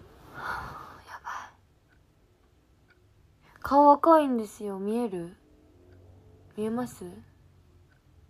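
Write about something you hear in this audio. A young woman speaks softly and expressively close to a microphone.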